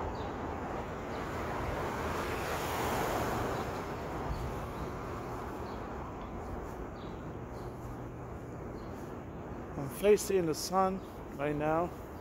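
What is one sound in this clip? City traffic rumbles steadily in the distance outdoors.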